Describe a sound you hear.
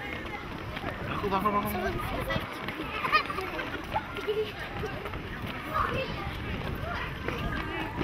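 Boys run on gravel with quick footsteps.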